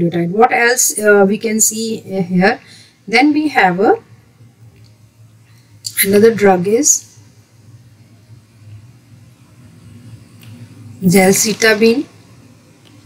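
A woman speaks calmly into a close microphone, in short bursts with pauses.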